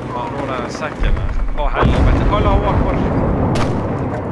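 A loud explosion booms nearby and rumbles away.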